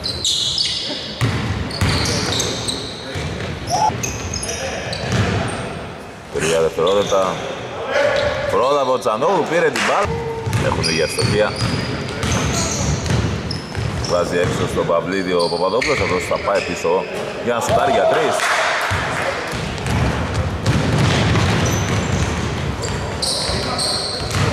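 A basketball bounces on a hardwood court in a large echoing gym.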